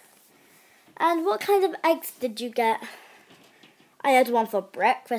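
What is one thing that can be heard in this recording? A young girl talks animatedly, close up.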